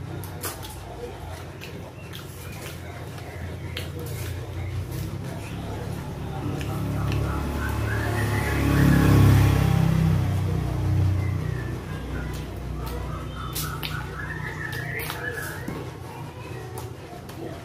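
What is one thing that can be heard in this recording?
A man chews food noisily with his mouth close by.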